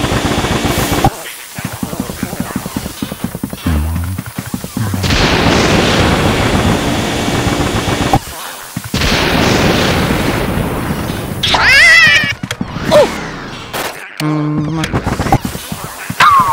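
A vacuum roars and whooshes as it sucks in air.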